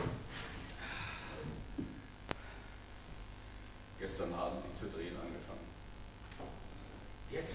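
A man speaks, heard from a distance in a large hall.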